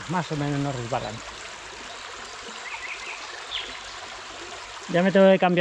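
Shallow water trickles gently over stones.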